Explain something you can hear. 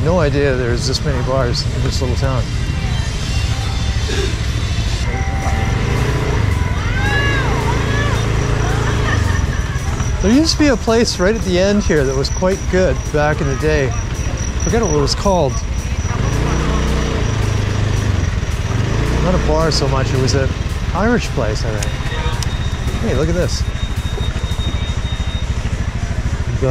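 A motorbike engine hums steadily and revs up and down as it rides along.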